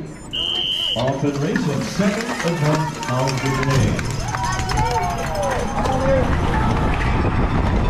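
Spectators cheer and shout from the roadside.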